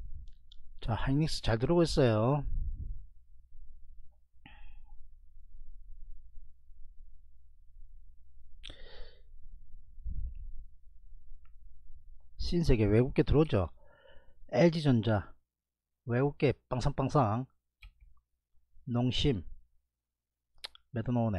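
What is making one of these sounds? A man speaks with animation into a microphone, in short bursts.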